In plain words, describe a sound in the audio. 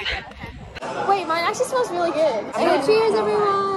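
Young women laugh up close.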